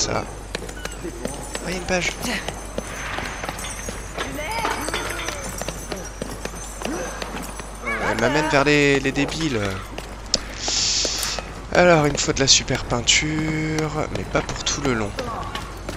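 Footsteps run on wet pavement.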